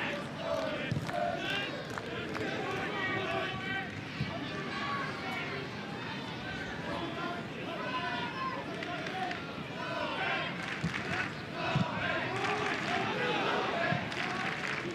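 A football is kicked with dull thumps.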